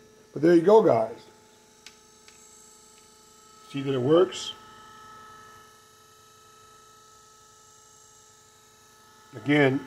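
A small electric motor hums steadily.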